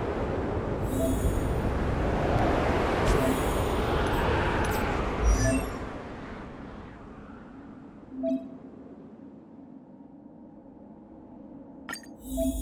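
Short soft chimes ring as menu options open and change.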